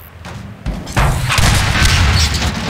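An explosion booms and roars loudly.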